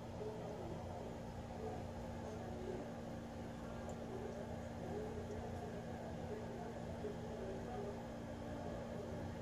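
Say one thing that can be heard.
Liquid pours softly into a glass bowl.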